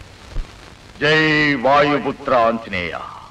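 A man sings loudly and with feeling, close by.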